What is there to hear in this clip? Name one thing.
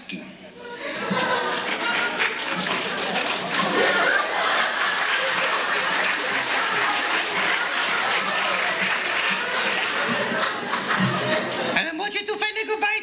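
A band plays lively music.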